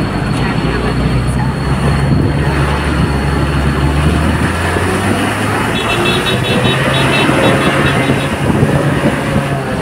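A van's engine rumbles close by as it passes.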